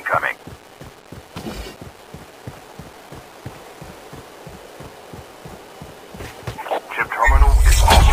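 Footsteps thud steadily on grass.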